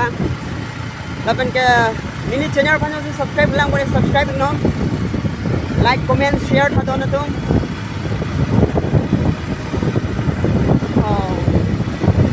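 Wind buffets loudly, outdoors on a moving motorbike.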